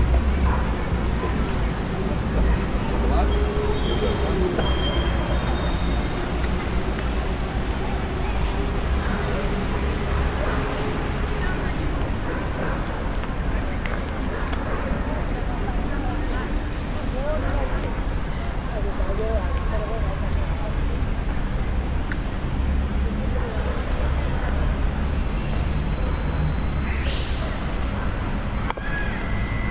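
A few adults talk faintly nearby outdoors.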